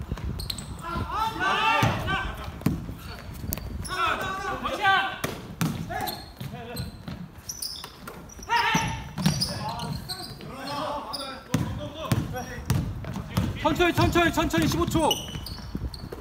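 Young men shout and call to each other across an echoing gym.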